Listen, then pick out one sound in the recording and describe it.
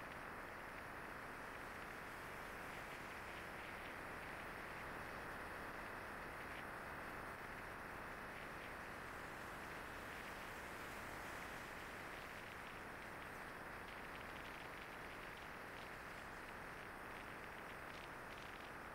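Wind rushes steadily past the rider.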